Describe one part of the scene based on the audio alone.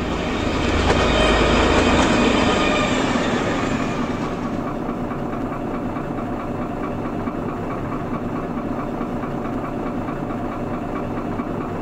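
A bus engine idles with a low steady hum.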